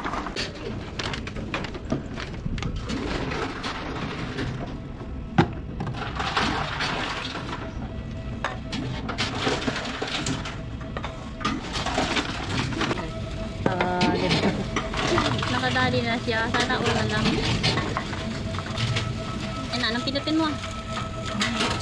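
Cans and bottles clatter and rattle as they are fed into a machine.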